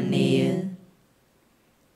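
A man chants through a microphone.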